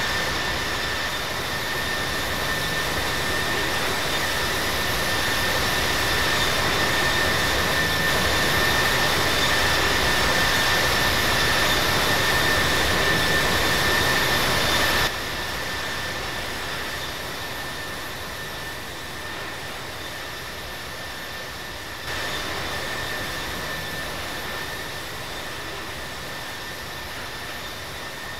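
Jet engines roar steadily with a high whine.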